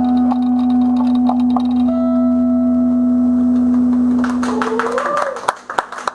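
An electric guitar rings out a held final chord.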